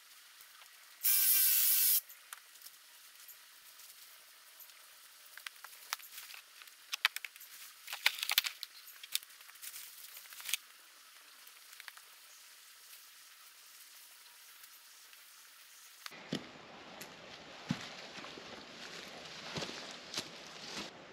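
Leafy branches rustle and scrape as they are gathered and dragged over the ground.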